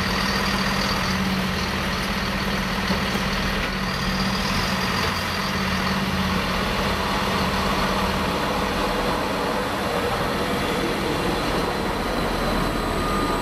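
An electric train approaches and rolls past close by, its wheels rumbling on the rails.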